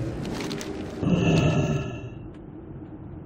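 A magic spell whooshes and chimes.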